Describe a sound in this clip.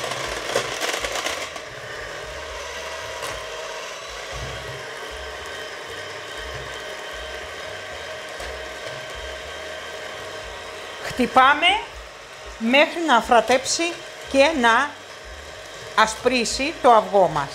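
An electric hand mixer whirs steadily as it beats a batter.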